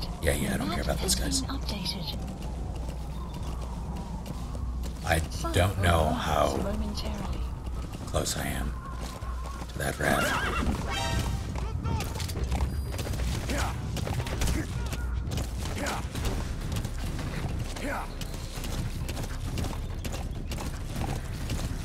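Horse hooves gallop steadily over dirt.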